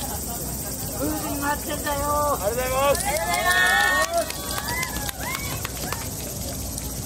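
A group of men and women chant loudly outdoors.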